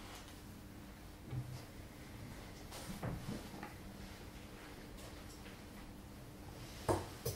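Footsteps shuffle slowly across a hard floor.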